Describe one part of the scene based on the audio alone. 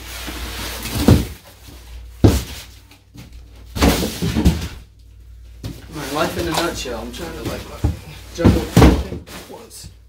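Heavy thumps and knocks sound nearby.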